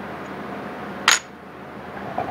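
A small block knocks down onto a metal table.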